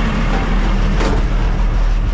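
A cab door slams shut.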